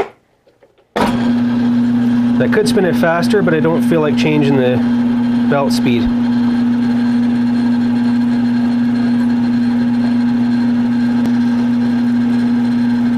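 A drill press motor hums steadily.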